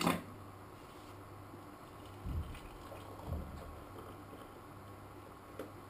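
Hot water pours from a kettle into a mug.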